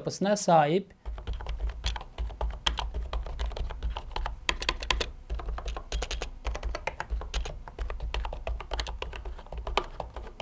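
Keyboard keys clatter rapidly as someone types.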